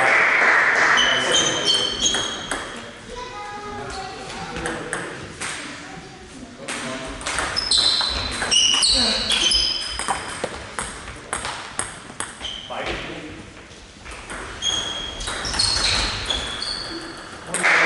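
Sports shoes squeak on the hall floor.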